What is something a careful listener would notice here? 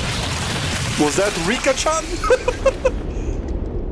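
A young man laughs softly close to a microphone.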